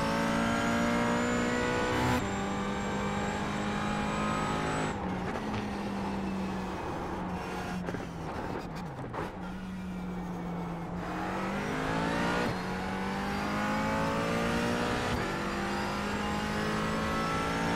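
A race car engine roars at high revs, shifting gears as it speeds up and slows down.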